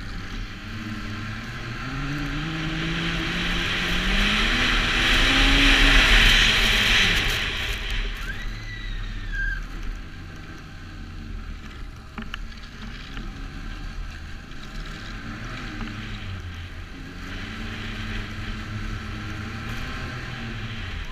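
A snowmobile engine drones close by, rising and falling in pitch as it speeds up and slows down.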